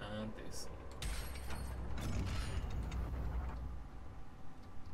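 A heavy metal gate rumbles and grinds.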